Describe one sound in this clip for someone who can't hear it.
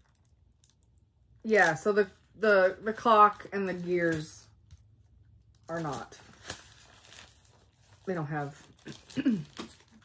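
Paper rustles as a sheet is handled.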